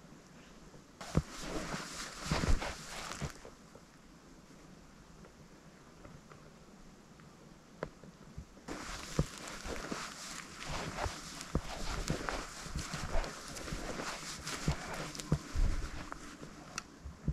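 Dry grass rustles and crunches close by.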